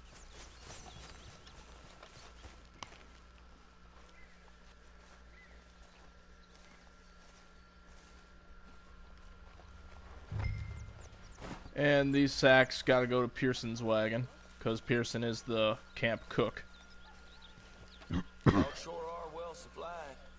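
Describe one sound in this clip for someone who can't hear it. Footsteps crunch softly through grass.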